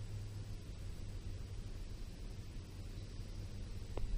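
A golf ball drops into the cup with a soft clatter.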